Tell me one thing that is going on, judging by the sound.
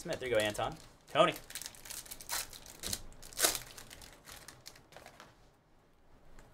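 Card packs crinkle and rustle as they are torn open.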